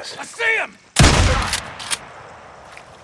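A rifle fires a loud shot that echoes away.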